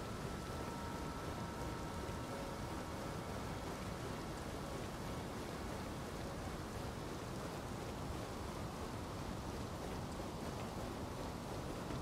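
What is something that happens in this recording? Footsteps clank on a metal ladder as a figure climbs.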